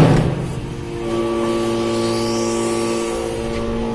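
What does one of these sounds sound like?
Metal shavings rattle and scrape as a press ram pushes into them.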